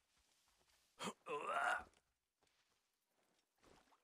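A weapon strikes during a close fight.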